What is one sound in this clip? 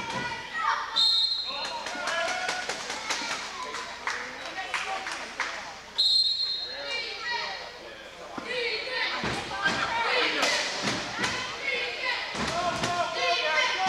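Players shout and call out across an echoing gym.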